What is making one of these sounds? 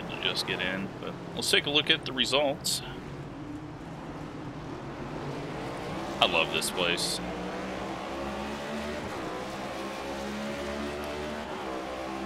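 A race car engine drones steadily at speed.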